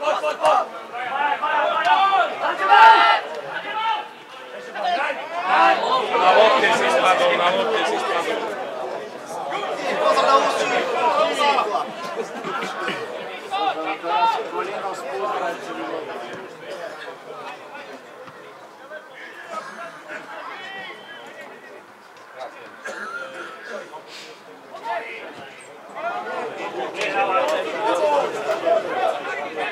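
Men talk close by, outdoors.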